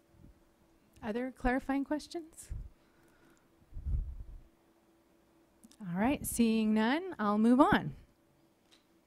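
A woman answers calmly through a microphone.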